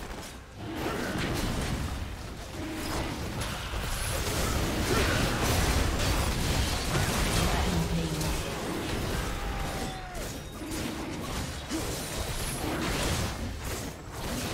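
Spell blasts and magical impacts crackle and boom in a game battle.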